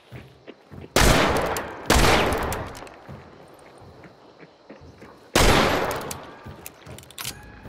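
Gunshots ring out loudly, echoing as they fade.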